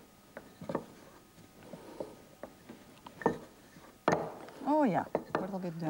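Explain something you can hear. A wooden rolling pin rolls over dough with soft thumps.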